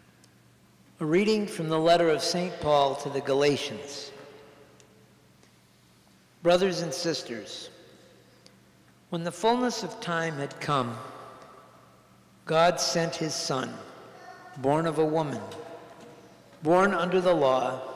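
An elderly man reads aloud in a large echoing hall.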